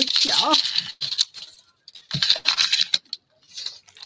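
Paper rustles and crinkles as it is handled.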